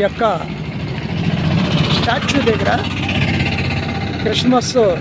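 An auto-rickshaw engine rumbles as it drives past.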